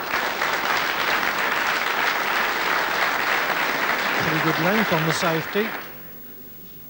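An audience applauds loudly in a large hall, then the clapping dies away.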